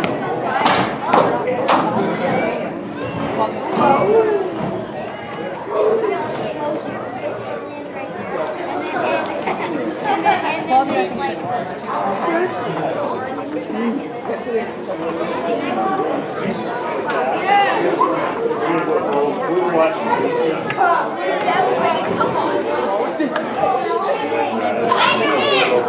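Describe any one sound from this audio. A man talks to a group outdoors.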